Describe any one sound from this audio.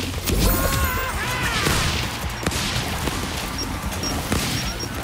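Gunfire crackles in quick bursts.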